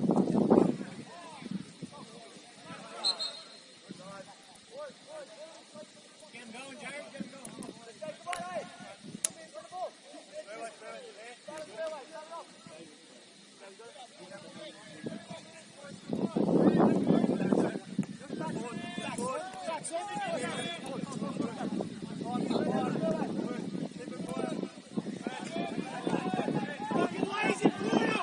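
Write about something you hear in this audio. Footballers shout and call to each other across an open field.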